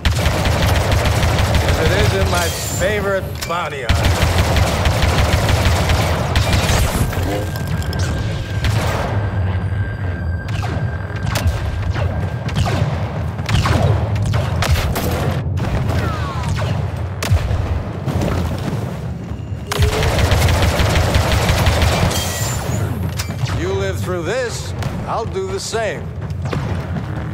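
Blaster fire zaps and crackles in rapid bursts.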